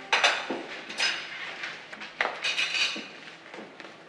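Dishes and glasses clink on a table.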